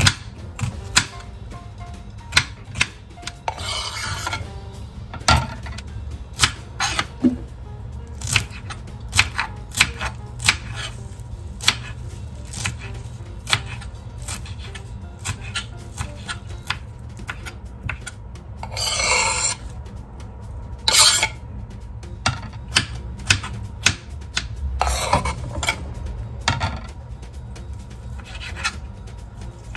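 A knife chops rapidly against a wooden cutting board.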